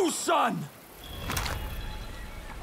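A man bites into a crisp apple with a crunch.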